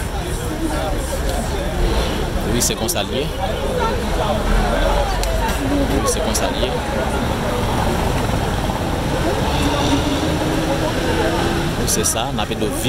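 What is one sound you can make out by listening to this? Several men talk and chatter nearby outdoors.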